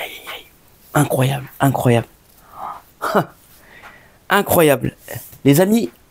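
A man speaks with animation, close by.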